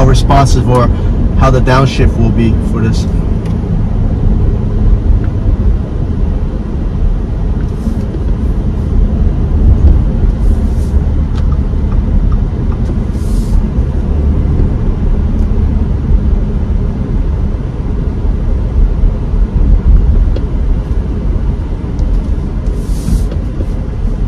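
A car's tyres rumble steadily on the road as it drives, heard from inside.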